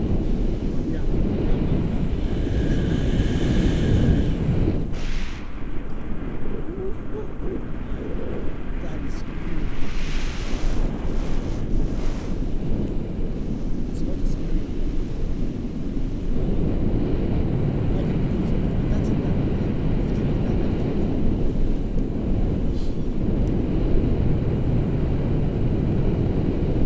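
Wind buffets and rushes past during a paraglider flight.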